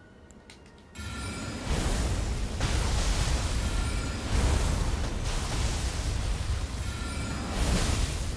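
Magic spells whoosh and crackle loudly.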